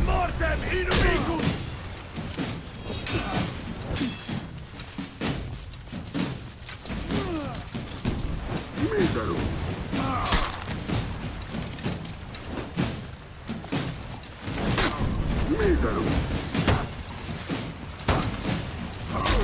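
Metal swords clash and clang sharply.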